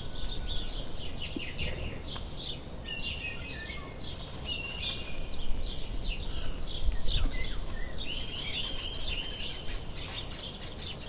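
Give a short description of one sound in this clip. A squirrel rustles softly through the grass.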